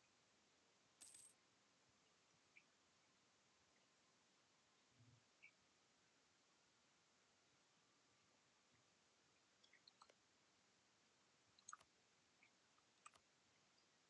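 Soft game interface clicks sound now and then.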